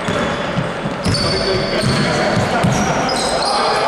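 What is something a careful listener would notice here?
A basketball bounces with dull thuds on a wooden floor in a large echoing hall.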